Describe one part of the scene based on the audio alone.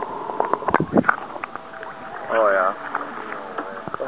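A large fish splashes at the water's surface.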